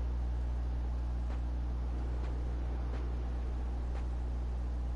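Boots step softly on sandy ground.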